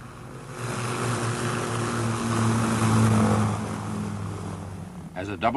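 Propeller aircraft engines drone steadily nearby.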